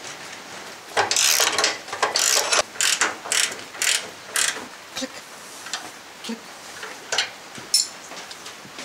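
A ratchet wrench clicks in quick bursts against metal.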